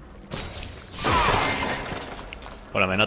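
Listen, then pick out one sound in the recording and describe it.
A short electronic chime and whoosh sound as a menu upgrade is confirmed.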